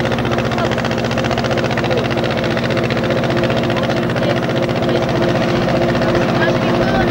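A boat engine chugs steadily close by.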